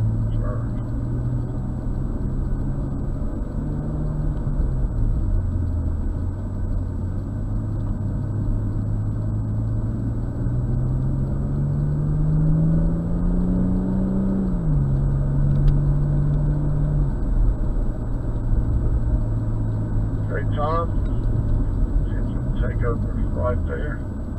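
A car engine hums steadily from inside, rising and falling in pitch as the car speeds up and shifts gears.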